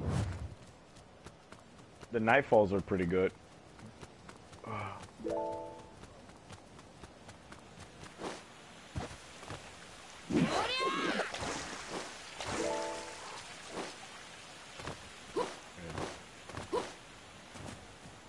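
Footsteps patter quickly on stone and grass.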